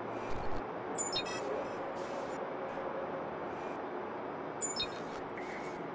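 Short electronic chimes beep.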